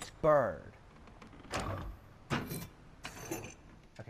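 A mechanism clunks open.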